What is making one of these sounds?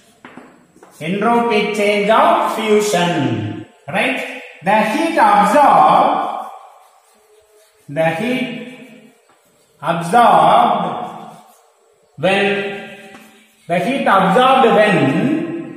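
A man speaks clearly and steadily, close by, as if teaching.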